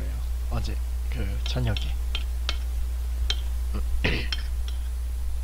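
A young man speaks quietly and casually close to a microphone.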